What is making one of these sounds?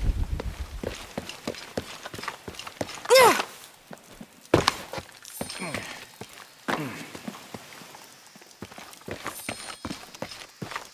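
Footsteps crunch over dry leaves and undergrowth.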